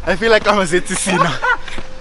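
A man laughs close by.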